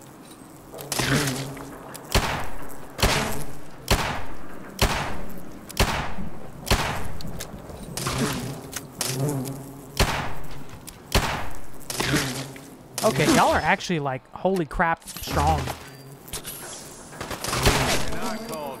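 A rifle fires shot after shot in quick, regular bursts.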